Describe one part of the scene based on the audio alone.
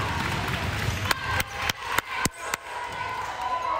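Hands clap in quick rhythm.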